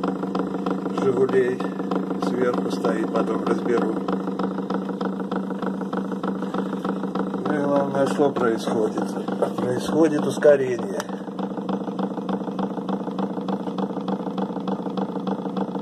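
An electric motor hums steadily as a heavy metal platter spins.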